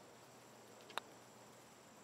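A putter taps a golf ball with a soft click.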